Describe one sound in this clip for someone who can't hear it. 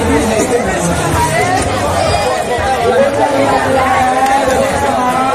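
A crowd of people chatters close by, outdoors.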